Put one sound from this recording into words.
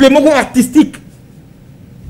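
A man speaks with animation close to a microphone, then falls silent.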